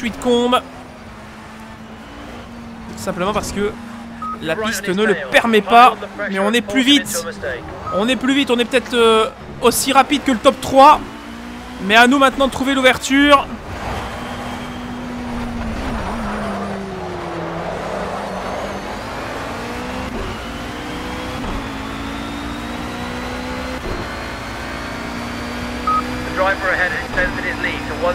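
A racing car engine drones and revs up and down through the gears.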